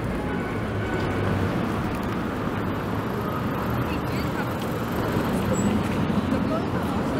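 Footsteps of many people patter across a street.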